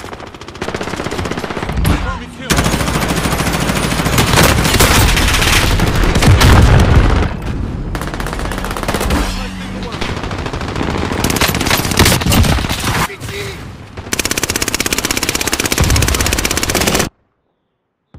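Automatic gunfire rattles rapidly.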